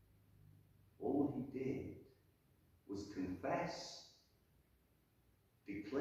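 A middle-aged man speaks calmly into a microphone, heard through loudspeakers in a large echoing hall.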